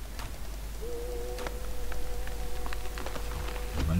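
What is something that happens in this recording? An axe chops into a tree trunk with dull thuds.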